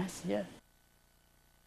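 An elderly woman speaks briefly into a microphone.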